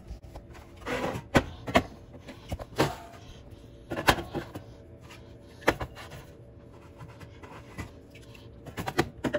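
Aluminium drink cans clink and knock against each other in a plastic fridge bin.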